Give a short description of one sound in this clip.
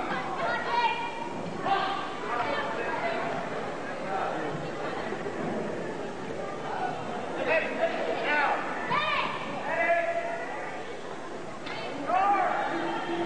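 A crowd of men shouts and calls out loudly in a large echoing hall.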